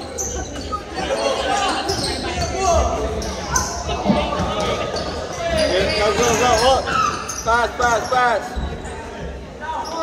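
Boys shout and call out to each other in an echoing gym.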